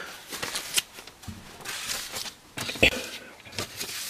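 Sheets of paper rustle as they are handled.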